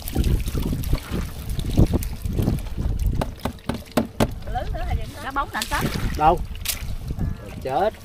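Shallow water splashes and sloshes nearby.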